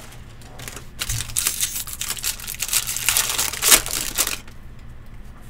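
A foil wrapper crinkles and tears as hands open a pack.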